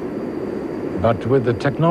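A man speaks through a crackly radio.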